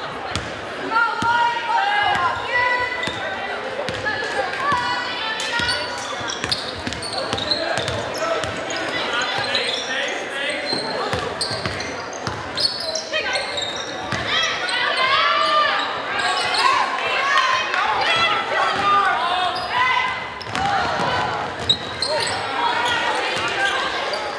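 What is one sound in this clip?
Sneakers squeak on a hardwood floor.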